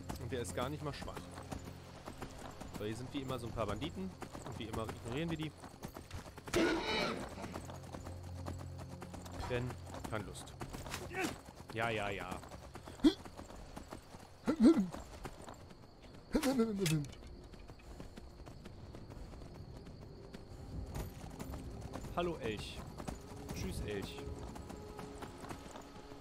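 Horse hooves clop steadily on a stone path.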